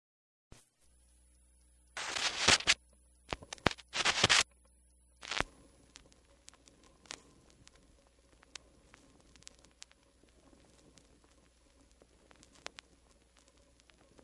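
A vinyl record crackles and pops softly as it spins on a turntable.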